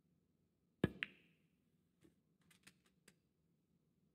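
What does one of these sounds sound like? Snooker balls knock against each other and the cushions.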